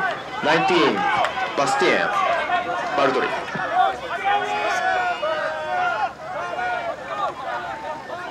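Men shout and call to each other outdoors.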